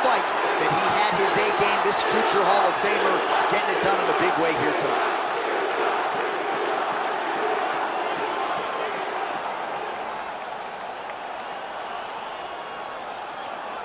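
A large crowd cheers loudly and slowly fades.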